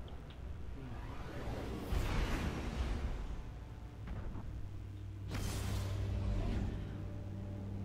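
Spacecraft engines roar with a rushing whoosh.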